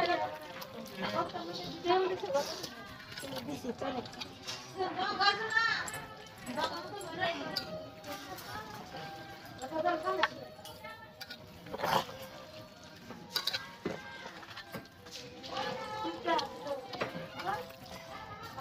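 Hands squelch and squish as they knead wet chunks of meat in a metal bowl.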